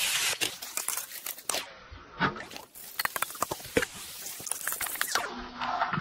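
Oil sizzles and crackles in a hot pan.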